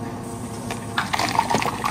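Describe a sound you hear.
Ice cubes rattle and clink against a glass.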